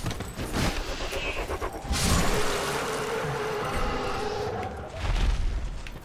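A metal weapon swings and strikes with a heavy thud.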